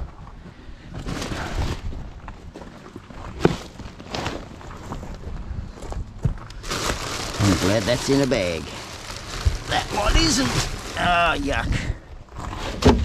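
Rubbish and plastic bags rustle and crinkle inside a bin.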